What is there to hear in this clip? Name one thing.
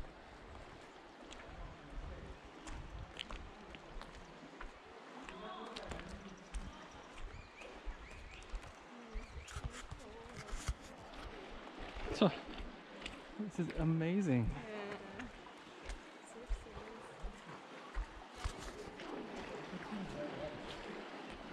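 Footsteps crunch on loose gravel close by.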